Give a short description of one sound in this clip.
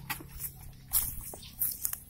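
Water pours from a hose onto soil.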